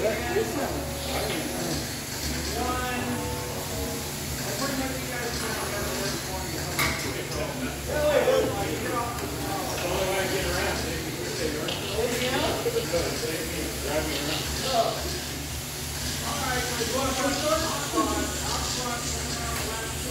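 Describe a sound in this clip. Small electric toy cars whir and buzz as they race around.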